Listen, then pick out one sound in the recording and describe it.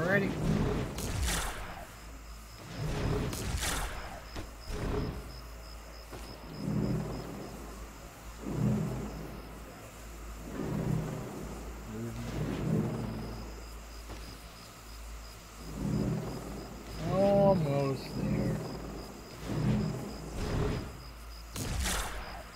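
Air whooshes in short rushing bursts as a figure swoops and glides.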